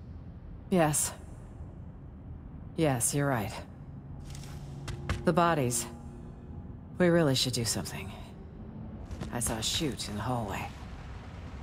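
A young woman speaks calmly and quietly, in short phrases.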